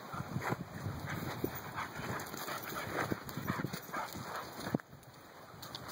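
Dogs scamper and scuffle across dirt ground.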